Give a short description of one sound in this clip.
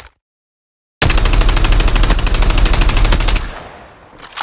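An automatic rifle fires a long, rapid burst of shots.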